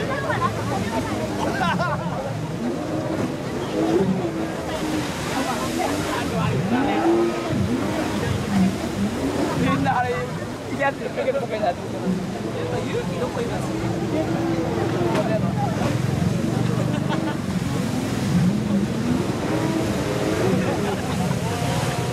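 Jet skis roar as they speed across the water.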